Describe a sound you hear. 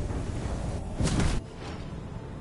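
A fiery blast bursts with a short loud whoosh.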